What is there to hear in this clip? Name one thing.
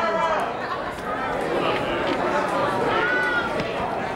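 A man in the audience claps his hands.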